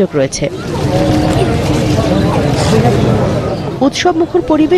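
A crowd of men murmurs and chatters outdoors.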